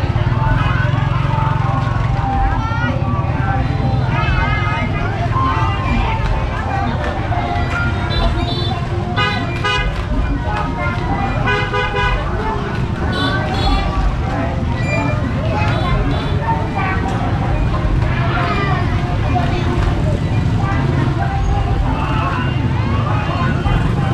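A small carousel hums steadily as it turns.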